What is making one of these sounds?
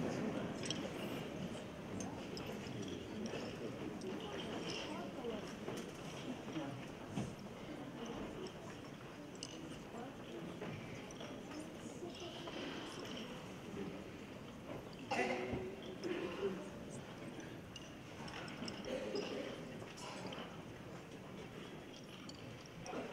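A large children's choir sings together in an echoing hall.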